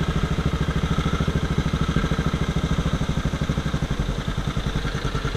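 A small engine chugs loudly and steadily close by.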